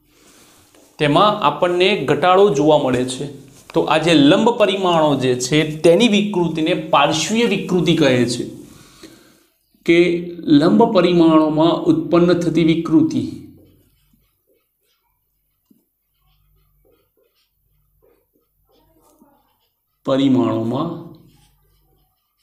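A man speaks calmly and clearly, close by, as if teaching.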